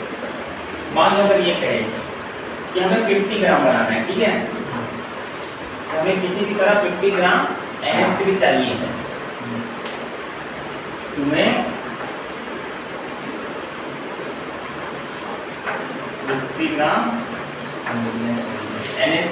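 A man speaks calmly, explaining.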